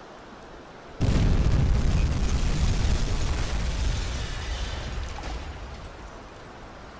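A loud explosion booms and rumbles, then slowly fades.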